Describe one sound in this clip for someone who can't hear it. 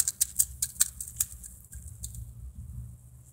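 A metal spring toy clinks and rattles close by.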